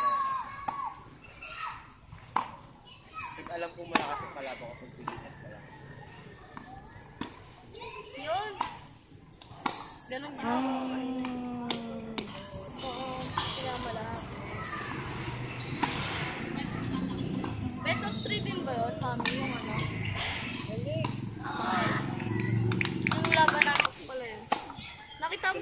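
A tennis ball is struck with a racket with sharp pops, outdoors.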